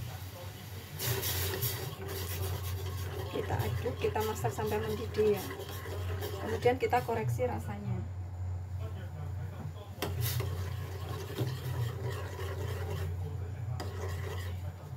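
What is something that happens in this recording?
A metal spoon scrapes and clinks against a pot.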